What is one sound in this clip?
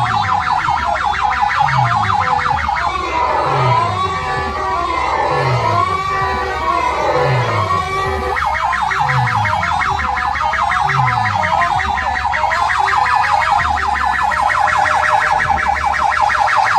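Loud electronic dance music booms from a large speaker stack.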